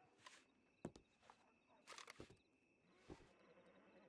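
A gun clicks and rattles as it is handled.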